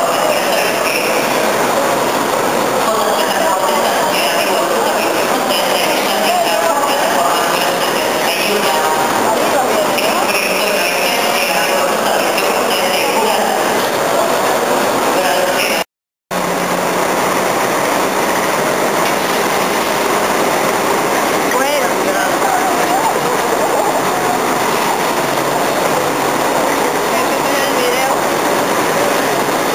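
A crowd chatters and murmurs all around in a busy echoing hall.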